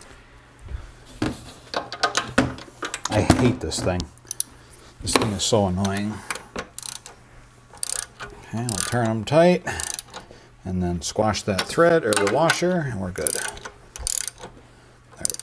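Metal tools clink against an engine part.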